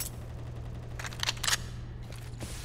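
A gun clicks and rattles as it is drawn.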